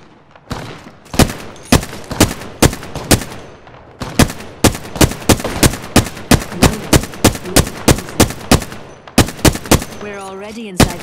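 A rifle fires in rapid single shots.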